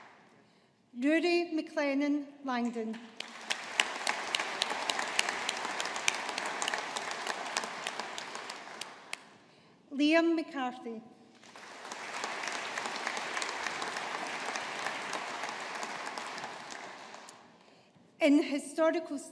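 A woman reads out over a microphone in a large hall.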